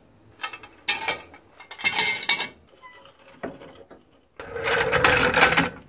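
A trolley jack creaks and clicks as its handle is pumped.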